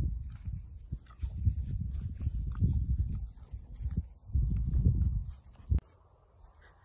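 Bare feet step softly on dry grass.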